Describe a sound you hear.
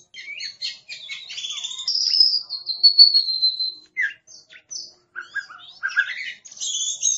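A songbird sings a varied, whistling song of chirps and long clear notes close by.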